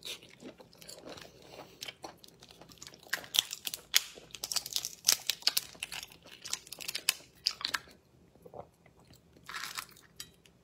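Shells of cooked shellfish crackle and snap close to a microphone.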